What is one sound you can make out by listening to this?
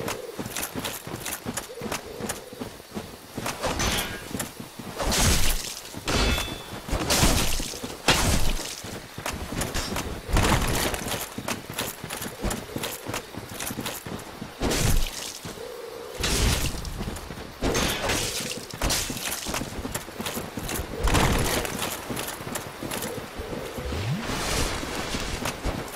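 Heavy footsteps crunch through grass.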